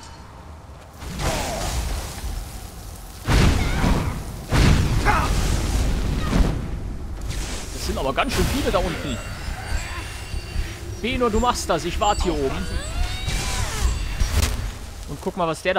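A fiery blast roars and crackles in bursts.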